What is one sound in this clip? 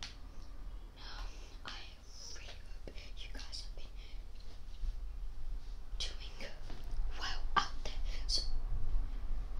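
A boy speaks quietly close by.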